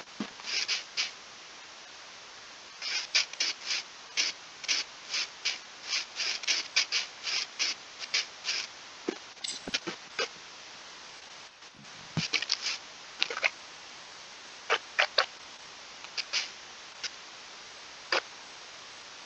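Footsteps crunch quickly over grass.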